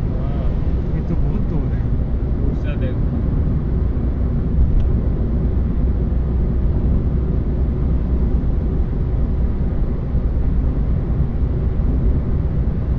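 A car drives fast along a highway, with a steady low rumble of road noise and wind.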